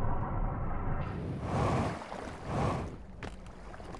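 A jetpack thruster hisses in short bursts.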